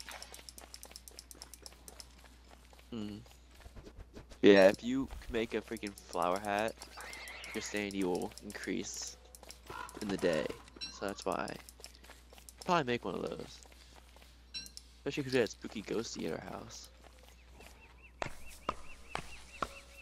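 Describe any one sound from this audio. A character's footsteps patter on dry ground.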